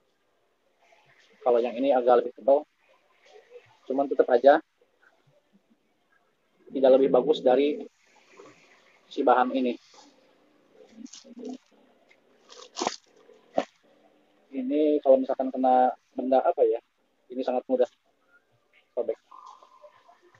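Fabric rustles as it is handled and unfolded.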